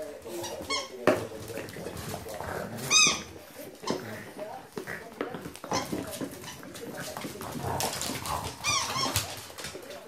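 A French bulldog puppy yelps high and sharp.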